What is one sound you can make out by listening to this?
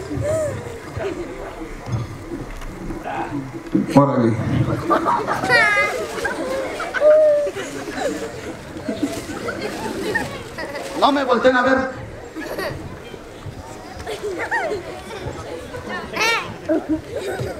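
A man talks with the children.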